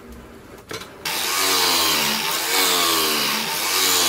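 An angle grinder whines loudly as it sands wood.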